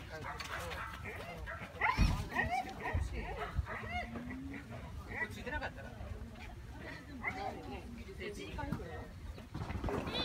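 A woman calls out to a dog from a distance.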